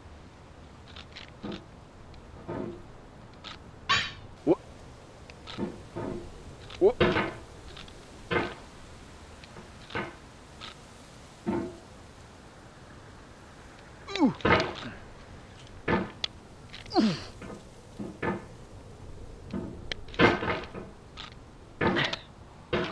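A metal hammer clanks and scrapes against rock again and again.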